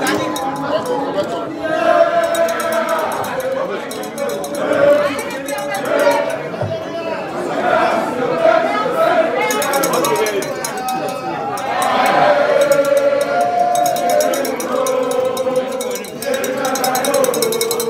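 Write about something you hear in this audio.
A crowd of men and women sing and chant together nearby.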